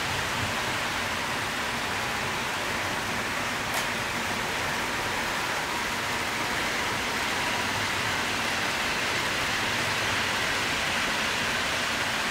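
Model trains hum and rattle steadily along their tracks.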